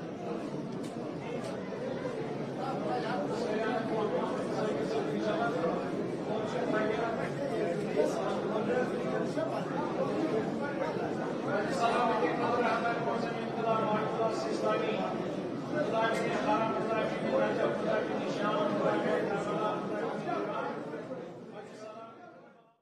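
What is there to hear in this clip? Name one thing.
A crowd of men chant together loudly in an echoing hall.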